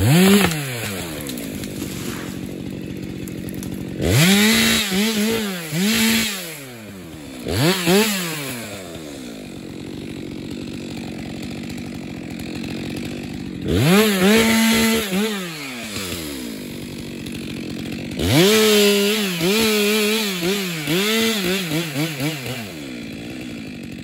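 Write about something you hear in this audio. A chainsaw revs in short bursts and idles between them, outdoors.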